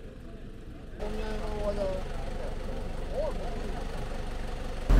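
Several adult men and women talk casually nearby outdoors.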